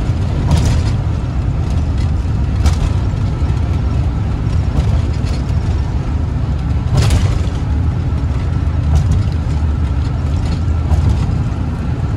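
Tyres thump over joints in a bridge deck.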